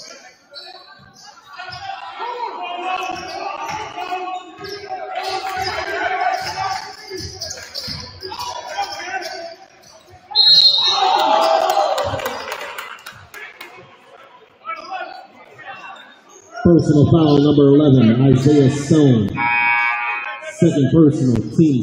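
A crowd chatters and cheers in a large echoing gym.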